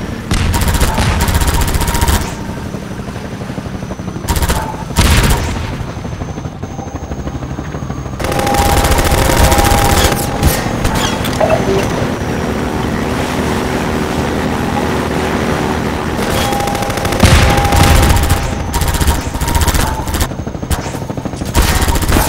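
A buggy engine hums and revs as it drives over rough ground.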